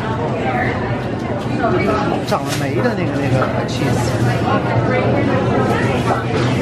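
A crowd of people chatter nearby in a busy room.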